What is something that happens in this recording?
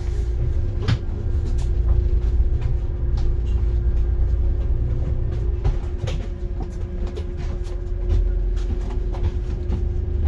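The bus body rattles and creaks over the road.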